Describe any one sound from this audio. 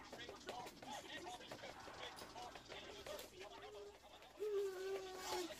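Cheerful children's music with singing plays from a television.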